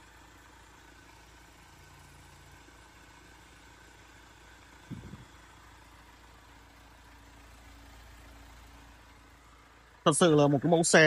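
An engine idles with a faint, steady hum.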